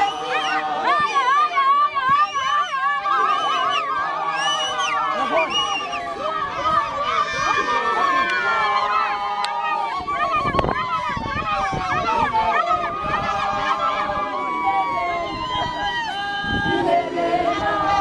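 A crowd of women sing and ululate loudly outdoors close by.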